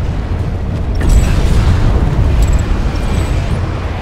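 A loud explosion booms and rumbles.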